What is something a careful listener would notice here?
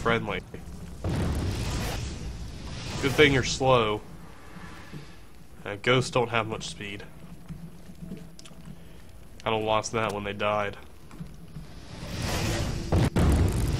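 A fireball spell whooshes and roars.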